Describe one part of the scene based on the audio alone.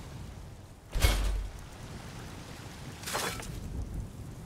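A hammer clangs on metal.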